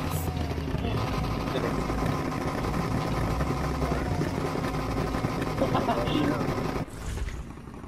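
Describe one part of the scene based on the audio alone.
Car engines idle with a deep, rumbling growl.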